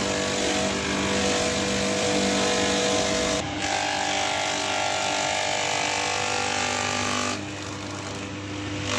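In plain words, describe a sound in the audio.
A shredder grinds and chops a green stalk.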